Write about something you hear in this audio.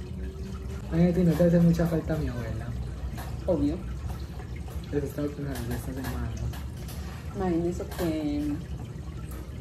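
An older woman talks with animation close by.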